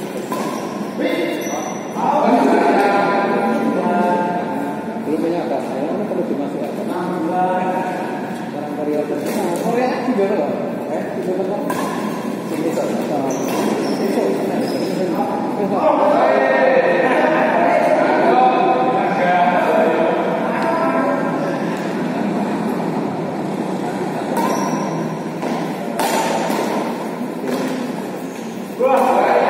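Rackets hit a shuttlecock back and forth in an echoing hall.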